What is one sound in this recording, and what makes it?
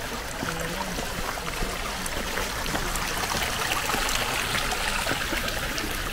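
A small stream trickles and gurgles close by.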